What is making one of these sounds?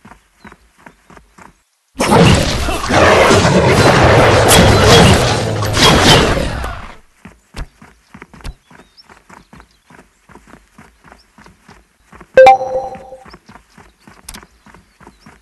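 Footsteps patter steadily on a path.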